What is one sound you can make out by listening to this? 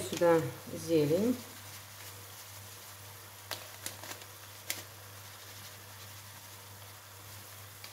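A paper packet rustles as it is shaken.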